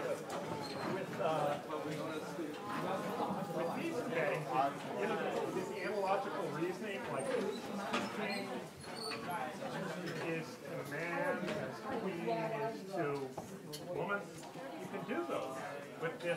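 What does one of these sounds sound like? Several young people chatter nearby.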